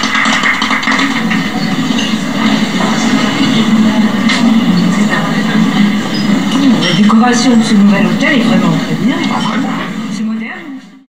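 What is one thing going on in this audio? A crowd of men and women chatter and murmur all around, indoors.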